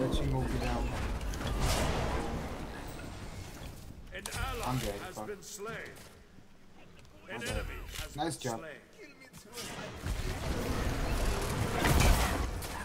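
Game sound effects whoosh and crash in loud bursts.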